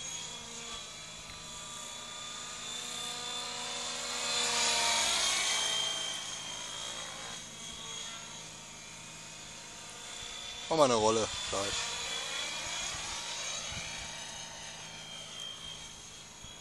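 A model helicopter's rotor whines overhead, rising and falling as it flies about.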